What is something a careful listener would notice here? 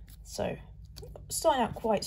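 A trading card rustles softly as it is handled.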